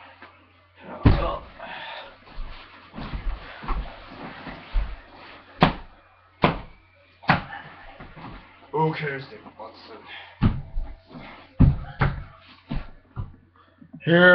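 Bodies thump and crash onto a bed during a scuffle.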